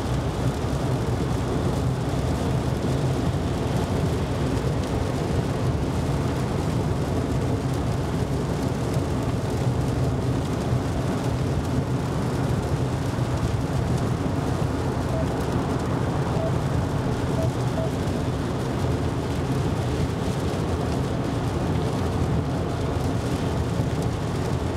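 Windscreen wipers sweep back and forth.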